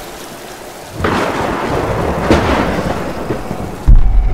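Pistol shots ring out.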